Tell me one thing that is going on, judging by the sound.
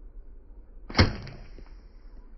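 A bowstring snaps sharply once, close by.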